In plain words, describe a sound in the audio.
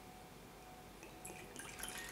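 A small glass clinks lightly against another glass.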